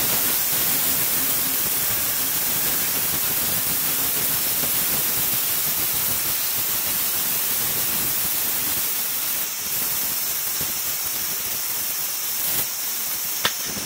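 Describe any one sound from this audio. A band saw whirs steadily as it cuts through wood.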